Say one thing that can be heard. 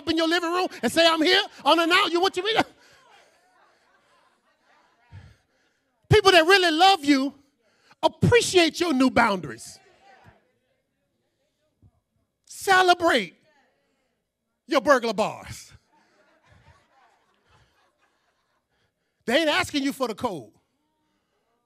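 A man preaches with animation into a microphone, in bursts with pauses between.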